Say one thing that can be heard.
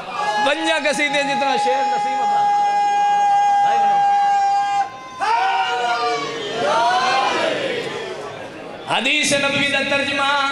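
A man chants loudly through a microphone and loudspeakers, holding long notes.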